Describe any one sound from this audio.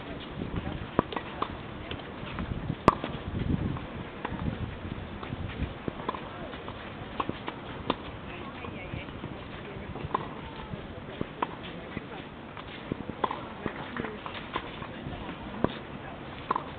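A tennis ball is struck with a racket, with sharp pops now and then outdoors.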